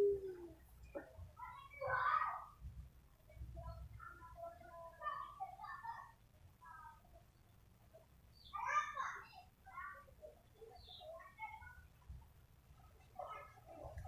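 A rooster clucks softly.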